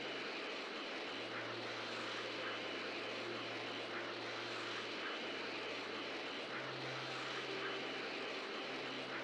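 A steady roaring whoosh of energy auras rushes through the air.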